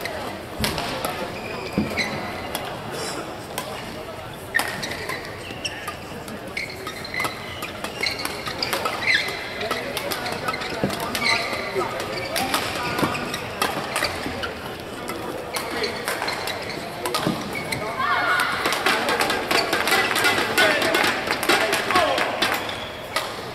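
Rackets smack a shuttlecock back and forth in a quick rally.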